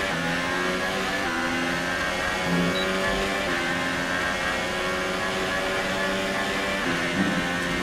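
A racing car engine screams at high revs, its pitch stepping up with each gear change.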